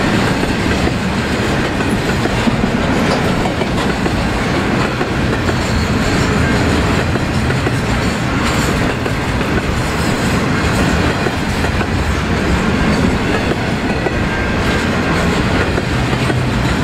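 A freight train of container wagons rumbles past at close range.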